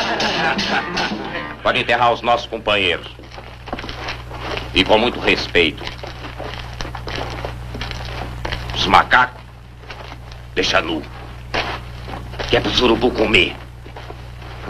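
A man speaks firmly and commandingly, close by.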